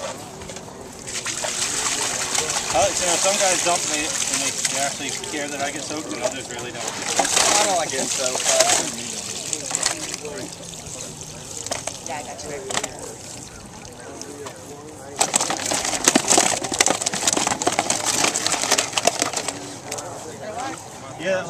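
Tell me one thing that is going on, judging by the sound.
Fish splash and thrash in shallow water.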